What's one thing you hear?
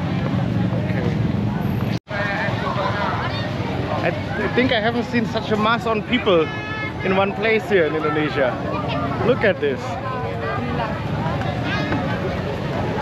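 A crowd murmurs and chatters in the background outdoors.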